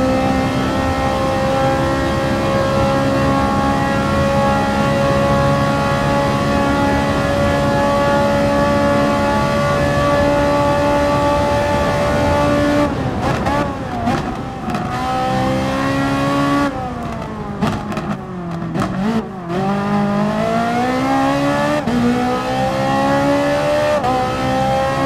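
A race car engine roars loudly at high revs.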